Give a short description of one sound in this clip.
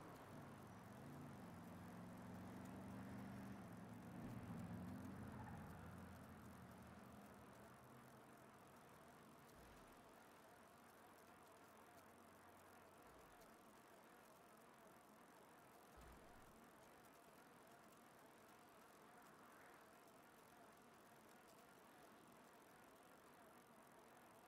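A BMX bike rolls over asphalt.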